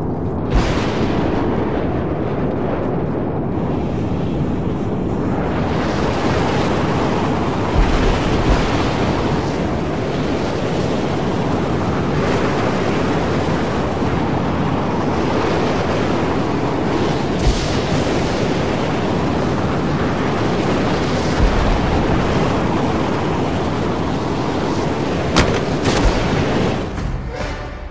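A strong wind roars and howls steadily.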